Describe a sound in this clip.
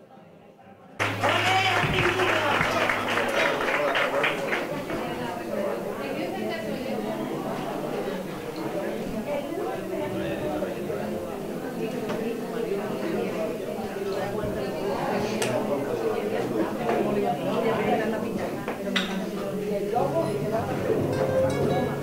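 An acoustic guitar is strummed and plucked at a lively pace.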